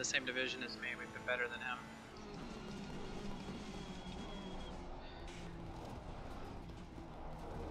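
A racing car engine roars and shifts gears.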